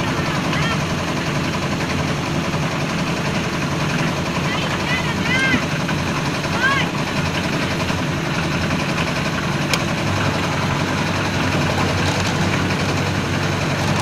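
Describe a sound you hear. A concrete mixer engine rumbles and churns steadily close by.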